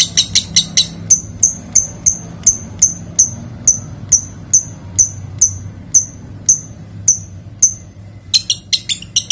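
A lovebird chirps in sharp, evenly spaced high notes.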